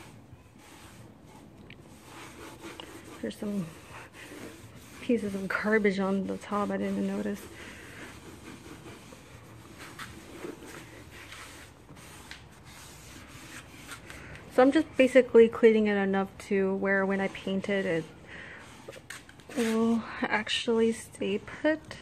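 A cloth rubs and wipes across a wooden surface.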